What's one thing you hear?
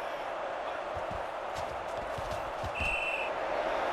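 Football players collide with dull thuds.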